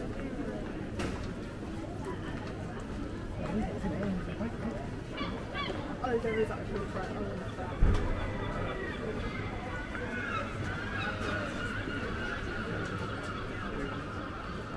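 A crowd of men and women chatter nearby and in the distance, outdoors.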